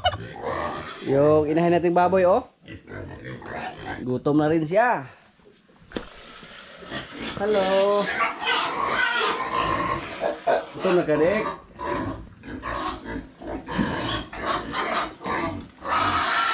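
A pig grunts.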